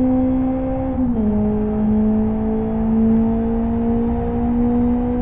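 A car engine drops in pitch as the gear shifts up, then climbs again.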